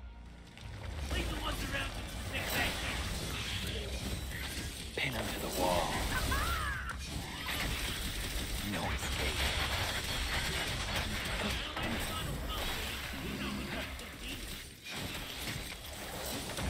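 Blades slash and strike repeatedly in a fight.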